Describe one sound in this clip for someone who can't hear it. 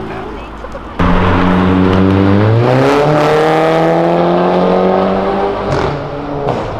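A car engine revs up and rises in pitch.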